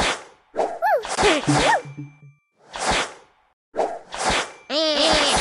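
Cartoon game pieces pop and burst in short, quick bursts.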